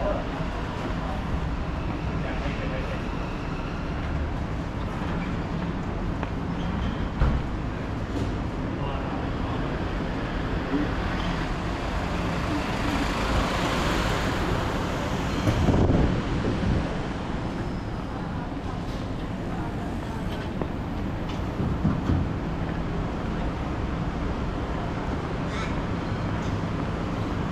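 Footsteps tap on a pavement.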